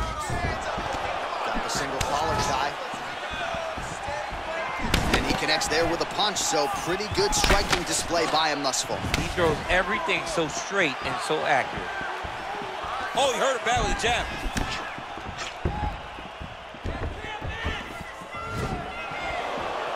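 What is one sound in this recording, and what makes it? Punches thud against a fighter's body.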